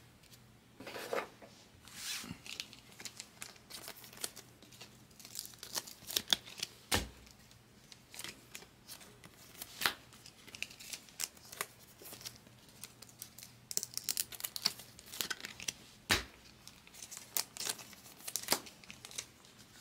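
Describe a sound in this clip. A plastic card wrapper crinkles and tears as it is opened.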